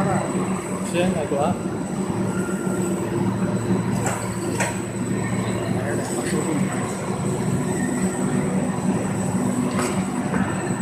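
Metal parts clack and knock now and then.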